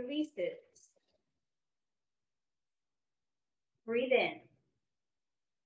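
A woman speaks calmly and softly into a close microphone, with long pauses.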